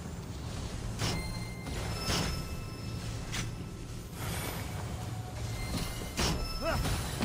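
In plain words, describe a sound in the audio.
Magical energy whooshes and chimes in short bursts.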